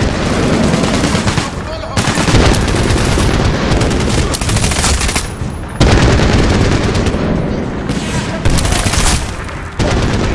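Automatic rifle fire rattles in loud bursts.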